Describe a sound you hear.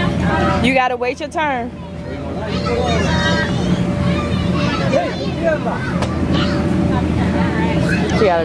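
Young children chatter and shout with high voices nearby, outdoors.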